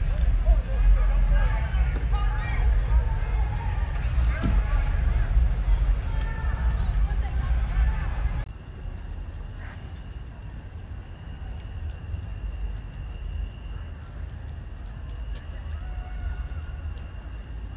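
Flames roar and crackle from a burning dump truck.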